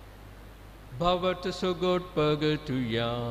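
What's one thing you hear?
A middle-aged man chants through a microphone.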